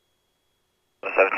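A young man speaks briefly through a headset microphone.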